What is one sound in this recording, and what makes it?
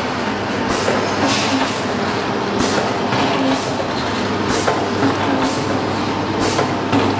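Puffs of air hiss in a regular rhythm from a packaging machine.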